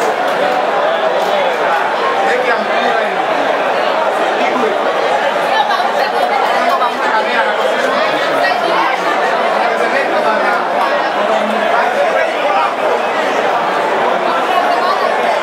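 A large crowd chatters and murmurs steadily outdoors.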